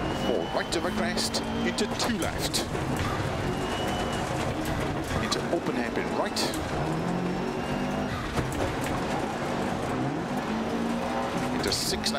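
Gravel crunches and rattles under the tyres.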